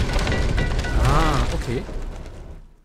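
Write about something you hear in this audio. A man speaks briefly and with animation into a close microphone.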